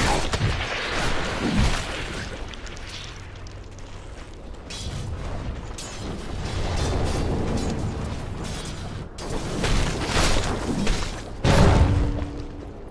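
Magic spells whoosh and crackle in bursts.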